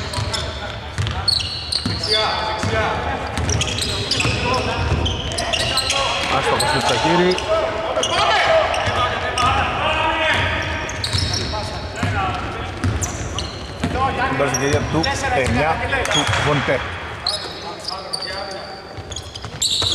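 Basketball shoes squeak on a hardwood court in a large echoing hall.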